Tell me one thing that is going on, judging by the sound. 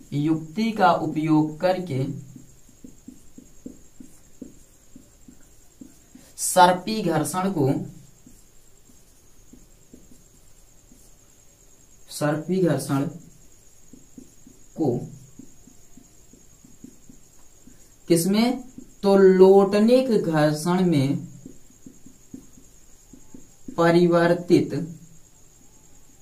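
A young man speaks calmly in short phrases, close by.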